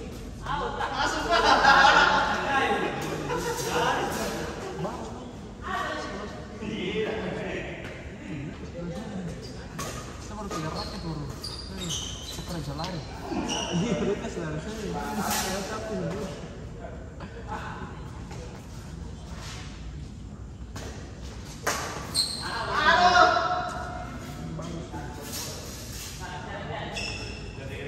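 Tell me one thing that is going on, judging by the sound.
Shoes squeak and scuff on a hard court floor.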